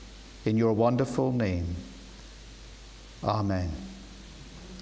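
A man speaks slowly and clearly through a microphone in a large echoing hall.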